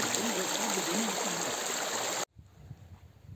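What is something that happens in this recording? Water trickles and splashes down a rocky stream close by.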